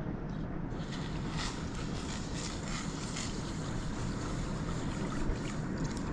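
Milk pours into a metal pan.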